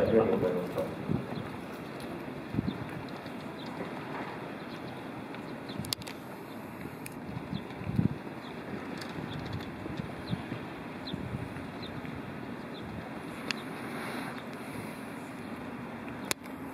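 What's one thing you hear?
Horses' hooves thud softly on soft ground as they walk.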